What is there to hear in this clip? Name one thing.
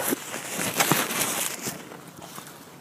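A napkin rustles against a mouth close to a microphone.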